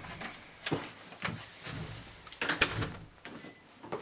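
A door handle rattles and clicks.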